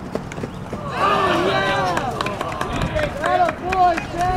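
Baseball players shout encouragement from a dugout.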